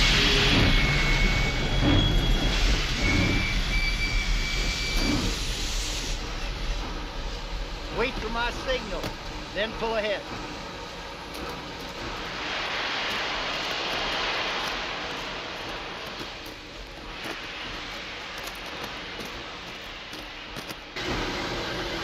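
Steam hisses loudly from a steam locomotive.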